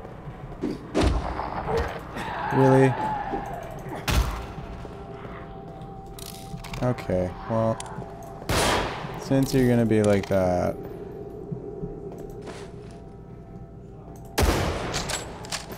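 Gunshots crack sharply, one at a time.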